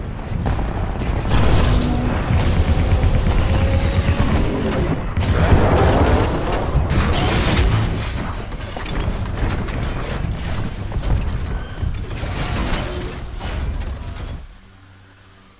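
Heavy gunfire blasts rapidly and loudly.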